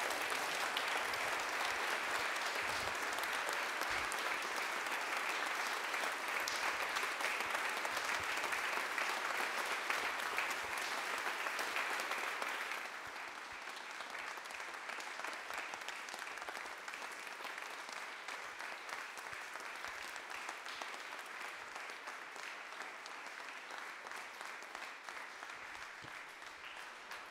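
A crowd applauds loudly, then the clapping slowly fades.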